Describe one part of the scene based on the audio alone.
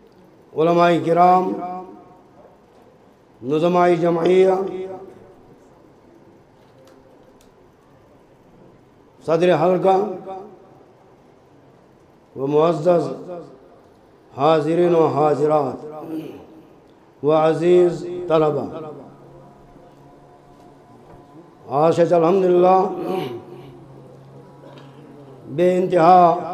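An elderly man speaks slowly and solemnly into a headset microphone through loudspeakers, in bursts with long pauses.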